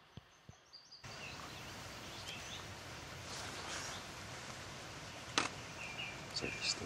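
A beaver chews plants at the water's edge.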